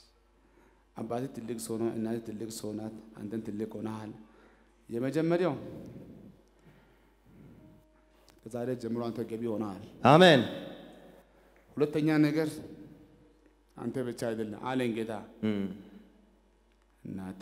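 A young man speaks with animation through a microphone, in a large echoing hall.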